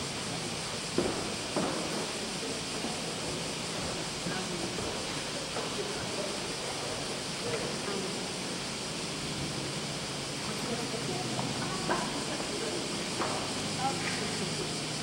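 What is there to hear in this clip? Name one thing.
People move about in pews with soft knocks and rustles.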